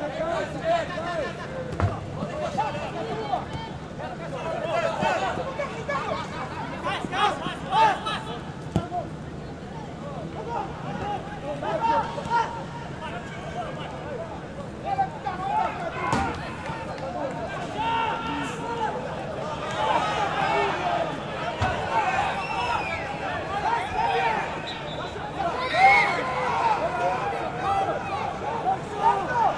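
A crowd murmurs and calls out in open-air stands.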